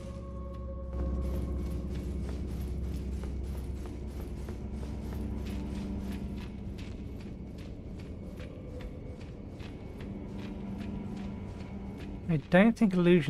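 Footsteps run quickly over a stone floor.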